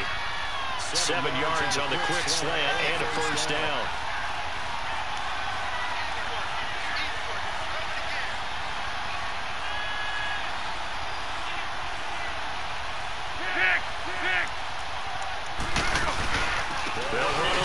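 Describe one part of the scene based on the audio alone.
A large stadium crowd murmurs and cheers steadily in the background.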